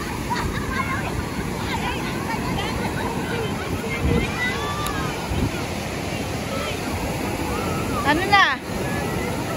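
Beachgoers chatter and call out in the distance.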